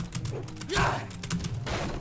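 Blows thud in a close fight.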